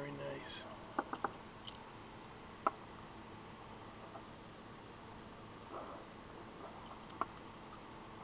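A small toy car clicks and taps as a hand turns it over.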